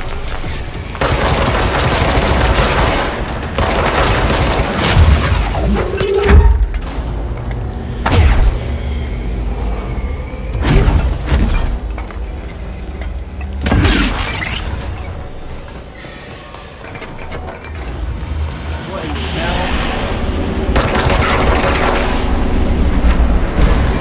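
A pistol fires rapid shots.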